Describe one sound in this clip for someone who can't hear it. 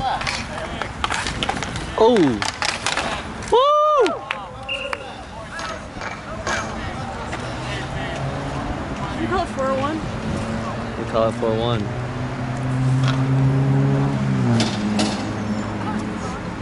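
Skate wheels roll and scrape on the rink surface.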